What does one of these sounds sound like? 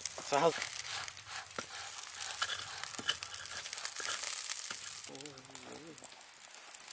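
Sausages sizzle over the fire.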